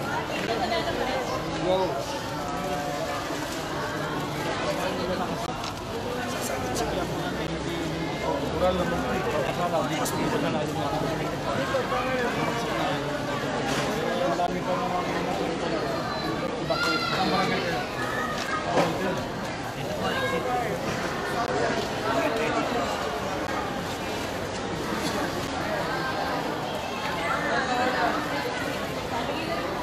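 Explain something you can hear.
A crowd of men and women talk and call out all around, close by.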